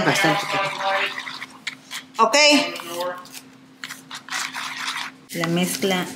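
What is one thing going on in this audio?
A spoon stirs and scrapes a thick liquid in a plastic bowl.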